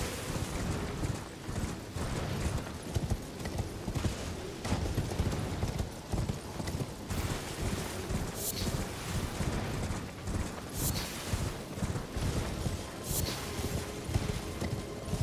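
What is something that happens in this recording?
A horse gallops steadily with heavy, rhythmic hoofbeats.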